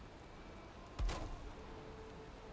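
A wooden beam knocks into place with a dull thud.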